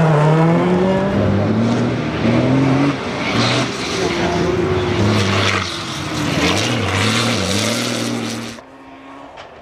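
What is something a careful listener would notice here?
A heavy truck engine roars and revs.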